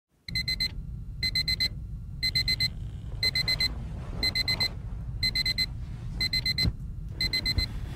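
A phone alarm beeps in quick bursts of four, once every second.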